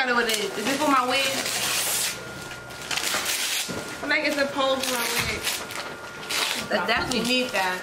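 Gift paper rustles and crinkles.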